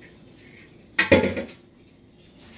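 A glass bowl clanks in a metal sink.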